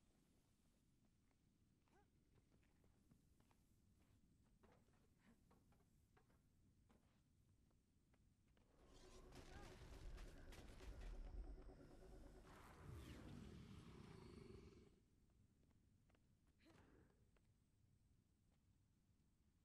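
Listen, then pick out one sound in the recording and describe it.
Footsteps patter on dirt as a game character runs.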